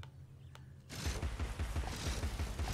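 A small gun fires in a rapid rattling burst.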